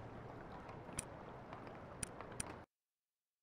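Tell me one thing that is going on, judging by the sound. Short interface clicks sound a few times.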